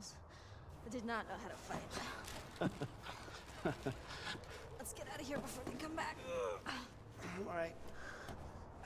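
A young woman speaks quietly and tensely.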